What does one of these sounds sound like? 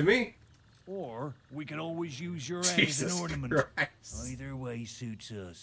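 A young man speaks mockingly.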